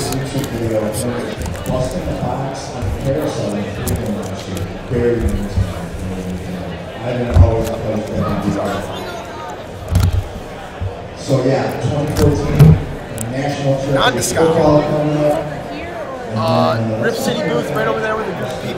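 Plastic card cases clack against each other and the table.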